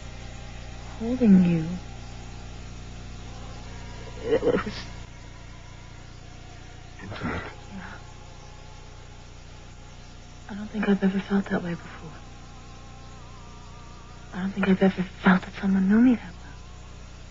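A woman speaks quietly and intimately, close by, with pauses.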